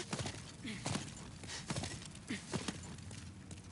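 Armoured footsteps clank on a stone floor.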